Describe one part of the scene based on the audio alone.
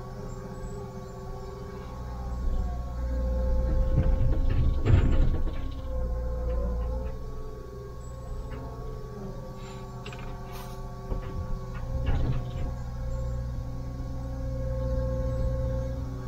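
Hydraulics whine as they rise and fall in pitch.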